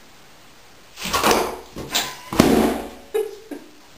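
A plastic ball thumps and rolls across the floor as a dog pushes it.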